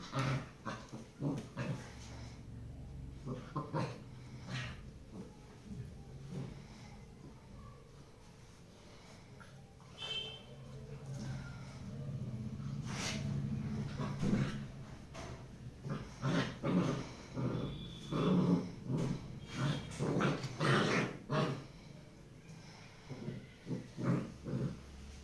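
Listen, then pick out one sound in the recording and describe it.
A puppy growls and yips playfully up close.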